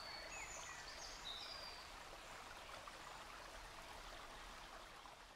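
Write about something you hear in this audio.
A small stream trickles and splashes over rocks.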